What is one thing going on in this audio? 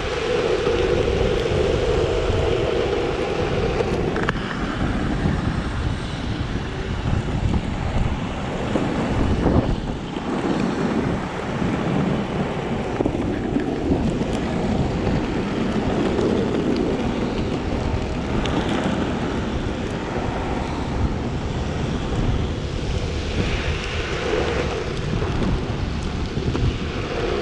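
Skateboard wheels roll and rumble over asphalt.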